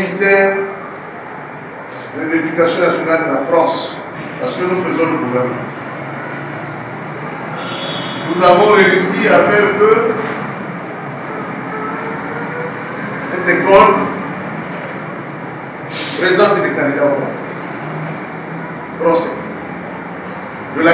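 A middle-aged man speaks calmly and deliberately into a microphone, with pauses.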